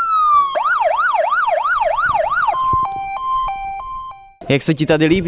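A fire engine siren wails up and down, then switches to a two-tone call.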